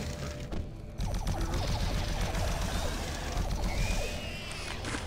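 Energy weapon shots fire in quick bursts.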